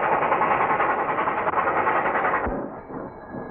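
A train rumbles past loudly.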